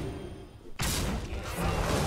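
A crumbling crash rumbles.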